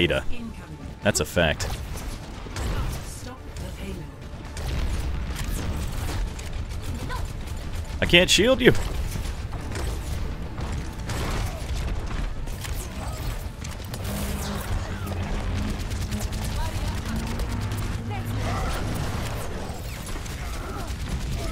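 A video game weapon fires energy blasts.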